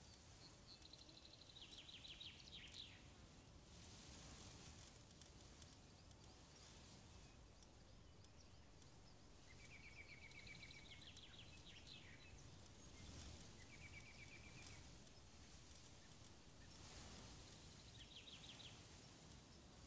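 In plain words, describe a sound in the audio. Short electronic ticks sound as a menu selection moves.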